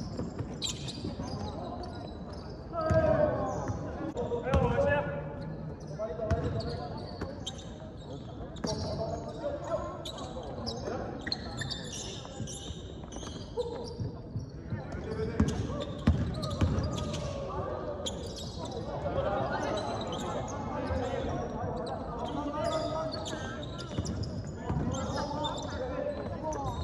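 Young men shout and call out to one another across the court.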